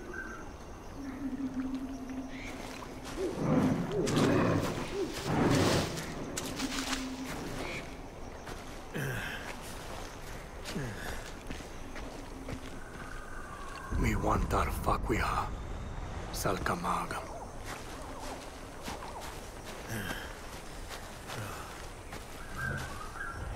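Footsteps rustle through dry grass and crunch on dirt.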